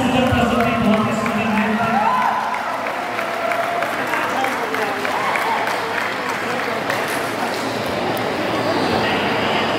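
Young women sing together, loud and close.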